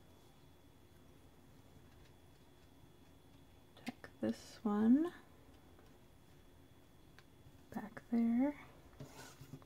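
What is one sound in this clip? Paper pieces rustle and tap softly as hands press them onto card.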